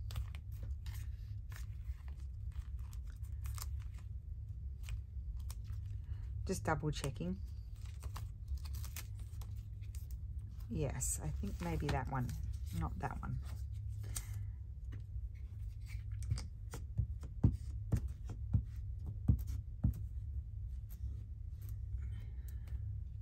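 Paper rustles and crinkles as it is handled up close.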